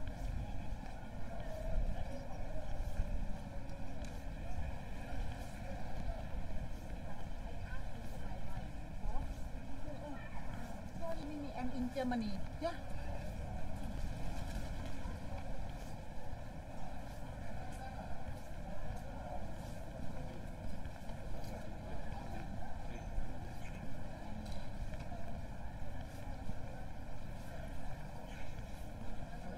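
Distant voices of passers-by murmur outdoors in an open street.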